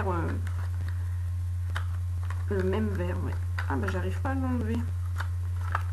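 A woman speaks calmly and close to a microphone, pausing between phrases.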